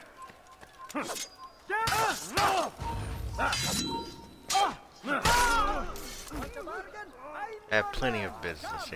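Swords clash and ring with sharp metallic strikes.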